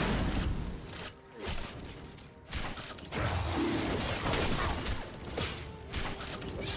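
Game sword strikes and magic blasts crash repeatedly.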